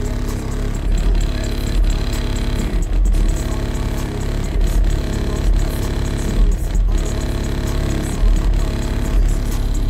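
Music with deep, thumping bass plays loudly from a car's sound system, heard from outside the car.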